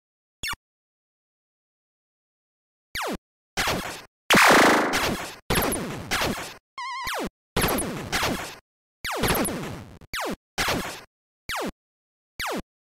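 Retro arcade laser shots zap with falling tones.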